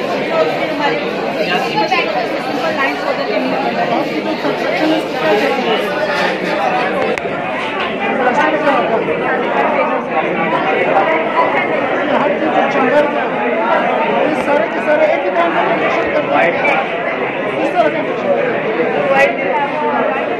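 A crowd of people chatters in the background of a large, busy room.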